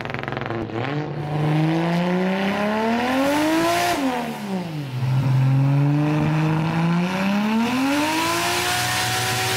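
A car engine revs up and down loudly, rising and falling in pitch.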